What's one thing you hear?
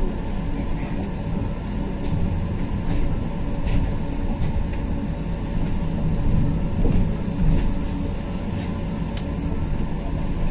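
A vehicle's engine and wheels rumble steadily from inside as it drives.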